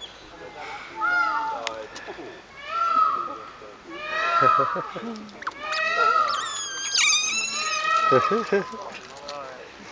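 Otters chirp and squeal in shrill, rising calls.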